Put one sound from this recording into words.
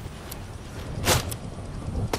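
A gunshot cracks once, close by.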